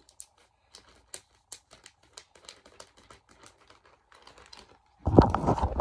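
A plastic bag crinkles and rustles in someone's hands.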